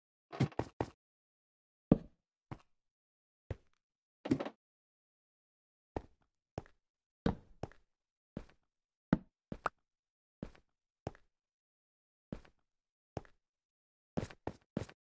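Footsteps tap on stone at an irregular pace.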